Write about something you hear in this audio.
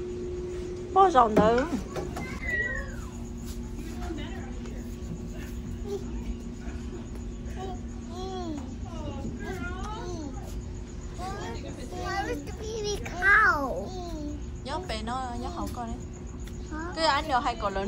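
A young child talks and squeals excitedly nearby.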